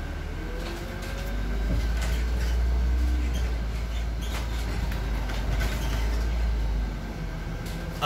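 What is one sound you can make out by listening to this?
A bus engine revs up loudly, then settles.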